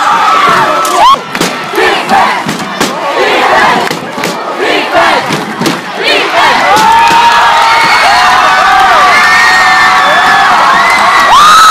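A large crowd cheers outdoors.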